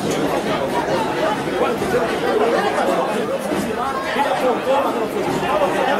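A crowd of spectators chants and cheers outdoors.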